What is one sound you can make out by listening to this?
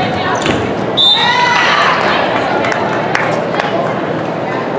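A crowd cheers and shouts as a rally ends.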